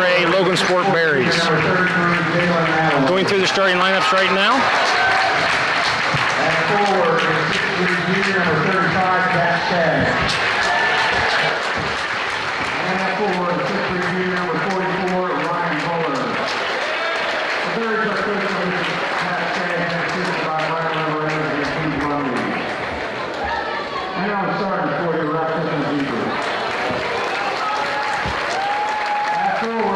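Pop music with a singer plays loudly over loudspeakers in a large echoing hall.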